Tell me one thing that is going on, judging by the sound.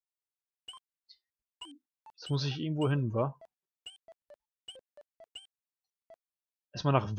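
Short electronic menu blips sound.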